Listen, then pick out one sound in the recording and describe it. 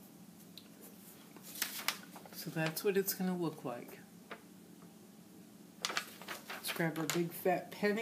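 A sheet of paper rustles as it is lifted.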